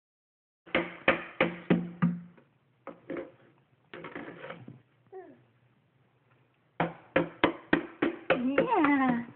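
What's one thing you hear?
A toy knocks repeatedly against a hollow plastic box.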